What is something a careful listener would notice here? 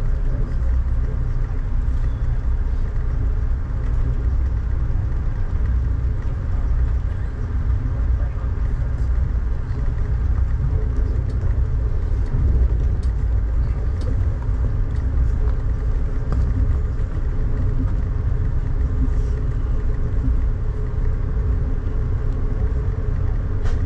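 A vehicle rumbles low and steadily as it drives.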